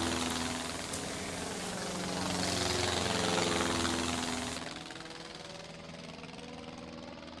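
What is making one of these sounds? A small toy propeller motor whirs with a steady buzzing hum.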